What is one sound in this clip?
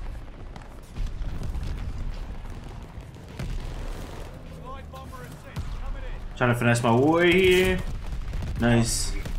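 Gunshots crack in short bursts.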